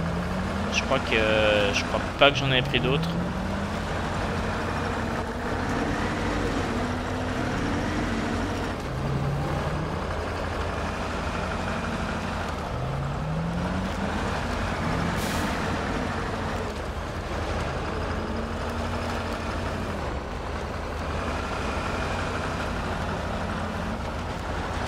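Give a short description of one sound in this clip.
A truck engine rumbles and revs as the truck climbs over rough ground.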